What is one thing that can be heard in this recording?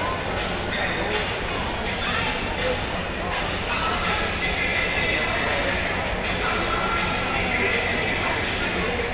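A crowd of people chatters nearby in a large, echoing indoor arena.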